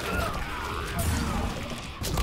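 Flames whoosh and roar in a sudden burst.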